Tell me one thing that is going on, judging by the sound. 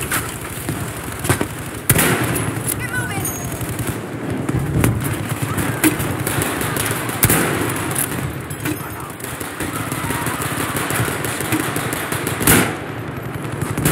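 Explosions rumble and boom nearby.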